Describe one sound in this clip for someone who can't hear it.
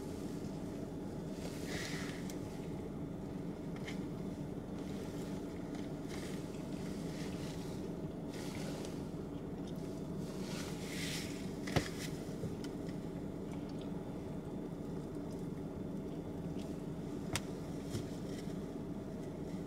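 A car engine hums steadily at idle.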